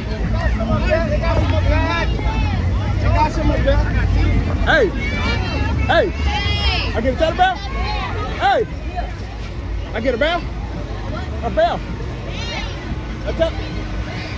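A crowd of men and women chatter and call out excitedly nearby.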